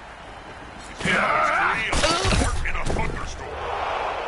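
Metal weapons clash and bodies thud in a brief fight.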